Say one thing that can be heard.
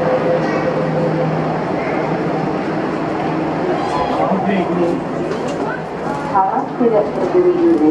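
A crowd of passengers murmurs nearby.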